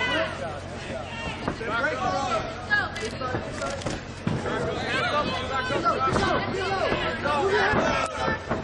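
Punches and kicks thud on bodies.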